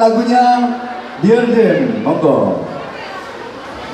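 A man speaks loudly through a loudspeaker, echoing in a large hall.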